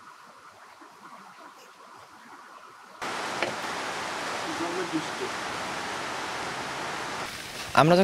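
A deer munches grain from a plate.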